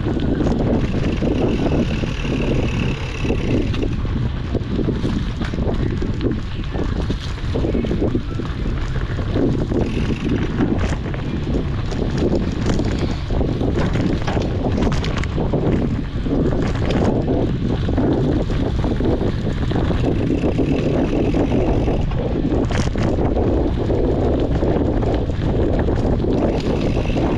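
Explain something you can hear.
Wind rushes loudly past the microphone throughout.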